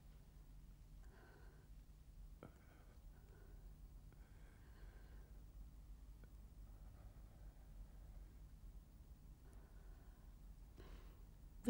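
A man speaks quietly and slowly, close by.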